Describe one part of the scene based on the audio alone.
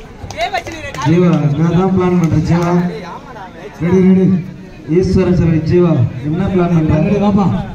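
A young man chants a word loudly and rapidly, over and over, close by.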